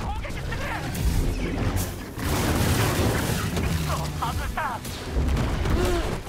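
A glowing sword hums and clashes in a fight.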